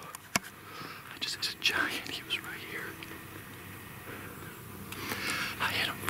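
A man speaks in a low voice very close to the microphone.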